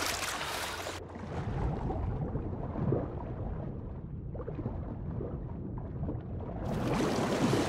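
Sound turns dull and muffled while a swimmer is under water.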